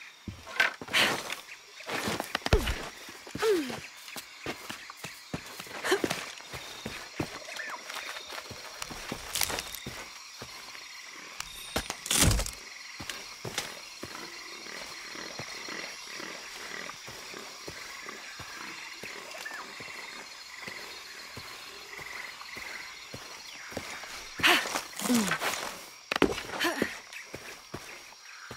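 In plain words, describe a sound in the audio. Hands and boots scrape and thud against rock during a climb.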